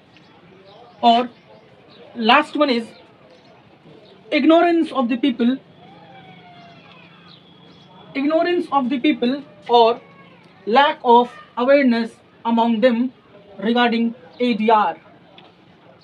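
A young man lectures clearly into a close microphone, in short bursts.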